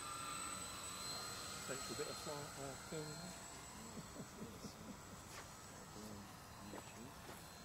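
A model plane's motor whines steadily and fades as it flies away.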